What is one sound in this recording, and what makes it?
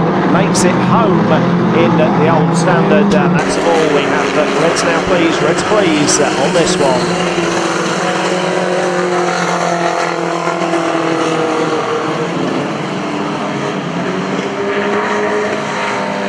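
Car engines rev and roar loudly.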